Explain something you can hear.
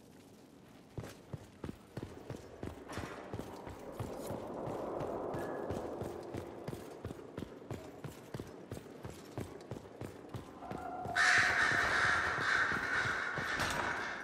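Footsteps tap steadily on stone floors.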